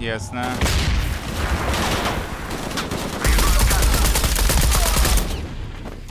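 A young man speaks into a headset microphone.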